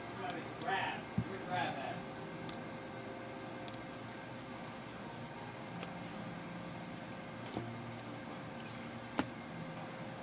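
Trading cards flick and tap softly as they are handled.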